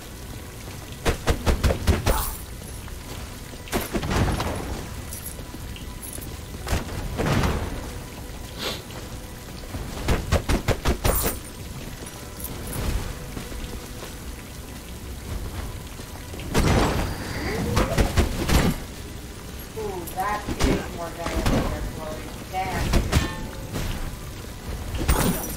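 Rapid bursts of game attack sounds crackle and thud.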